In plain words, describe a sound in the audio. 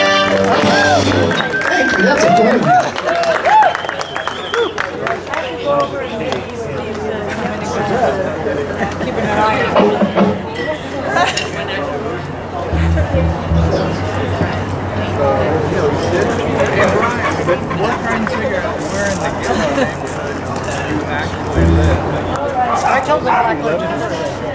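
A live rock band plays loudly.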